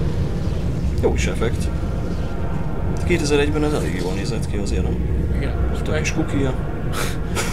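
A young man talks casually, close to a microphone.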